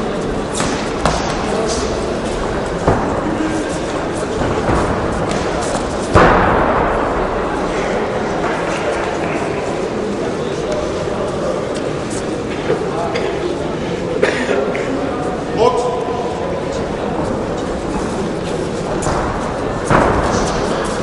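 Gloved punches thump in quick bursts.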